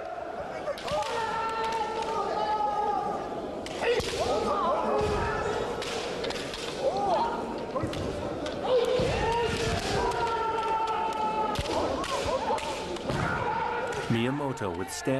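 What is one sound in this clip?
Men shout loudly and fiercely as they strike.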